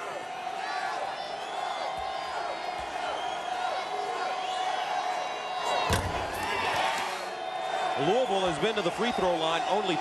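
A large crowd murmurs and calls out in an echoing arena.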